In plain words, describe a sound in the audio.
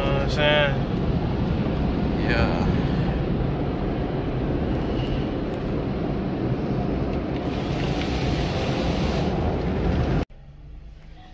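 Water sprays and brushes scrub loudly over a car, heard from inside it.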